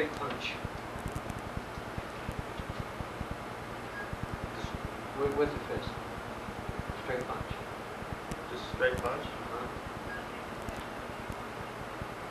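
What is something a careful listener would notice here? A man talks calmly, explaining, in an echoing room.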